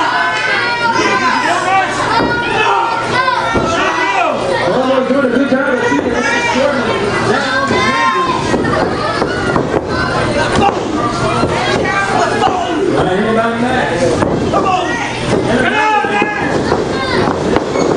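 Bodies thud and slap against a wrestling mat.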